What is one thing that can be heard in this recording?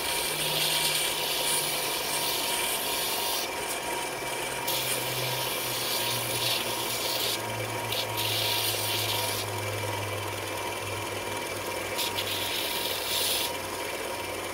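A small piece grinds against a running sanding belt with a harsh hiss.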